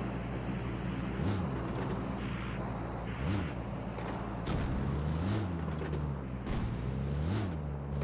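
Tyres roll over a rough road.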